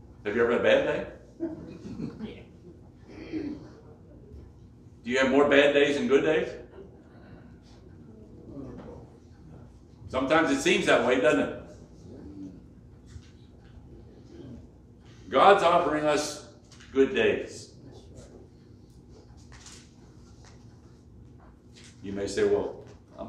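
An elderly man preaches in a slow, measured voice with long pauses, heard through a microphone in a room with some echo.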